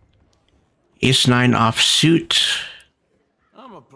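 A middle-aged man speaks loudly and with animation into a close microphone.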